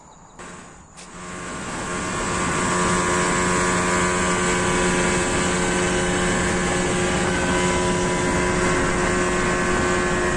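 An outboard motor drones steadily.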